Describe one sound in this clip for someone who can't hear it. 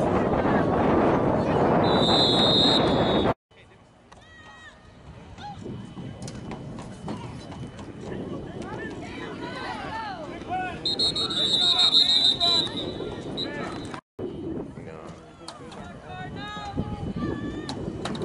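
Young players and adults shout and cheer outdoors on an open field.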